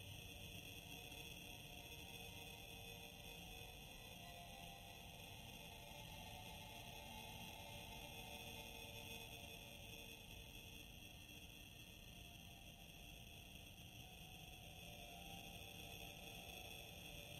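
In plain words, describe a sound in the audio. Spaceship engines roar with a steady, deep rumble.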